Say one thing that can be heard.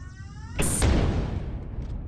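Gunfire bursts loudly.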